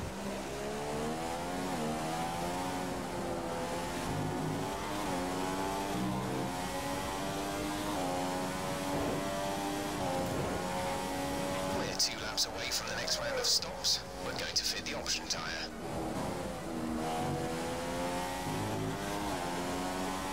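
A racing car engine whines loudly, its pitch climbing and dropping as it shifts gears.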